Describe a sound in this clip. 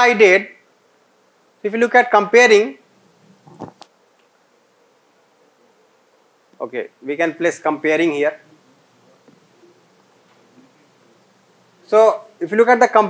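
A man speaks calmly in short phrases through a microphone.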